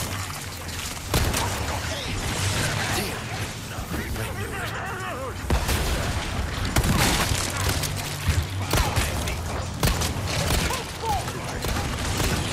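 A handgun fires sharp, loud shots.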